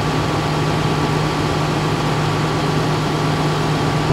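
Water hisses from a fire hose.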